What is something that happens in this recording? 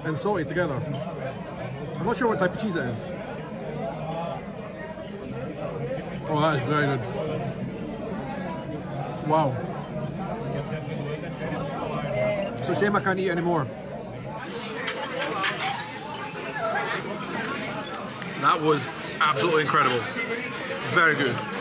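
A man talks close to the microphone in a relaxed, chatty way.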